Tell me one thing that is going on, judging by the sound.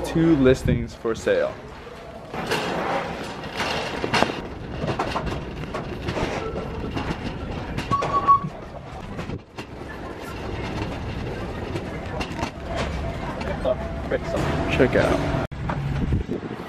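A shopping cart rattles as it rolls along a hard floor.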